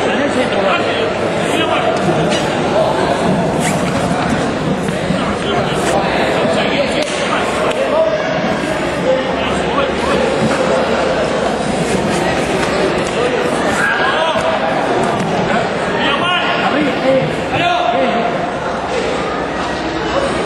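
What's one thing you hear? A crowd cheers and shouts throughout a large echoing hall.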